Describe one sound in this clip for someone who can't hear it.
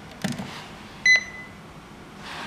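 An intercom panel gives a short electronic beep.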